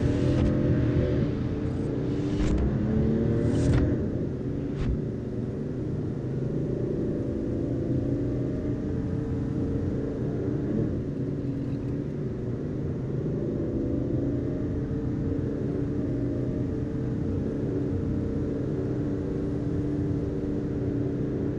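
A car engine hums steadily as the car drives along a road.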